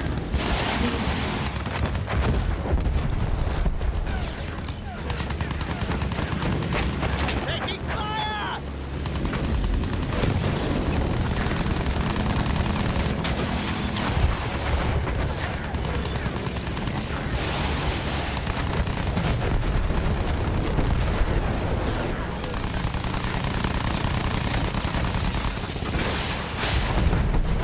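A propeller engine drones loudly and steadily.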